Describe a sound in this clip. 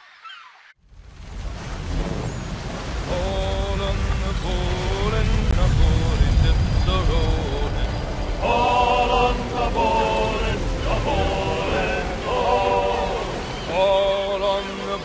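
Rough sea waves surge and splash against a sailing ship's bow.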